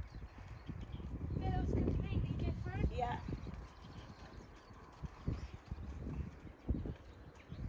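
A horse's hooves thud steadily on soft ground as it trots.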